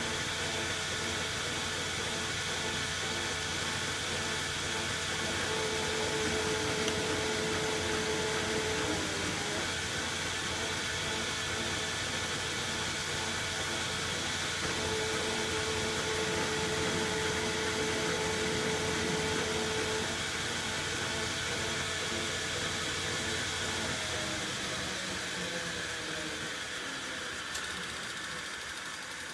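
A machine runs with a steady whirring hum.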